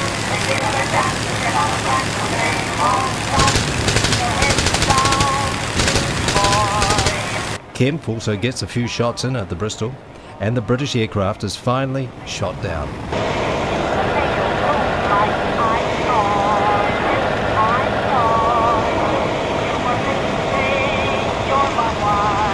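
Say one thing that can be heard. An aircraft engine drones steadily close by.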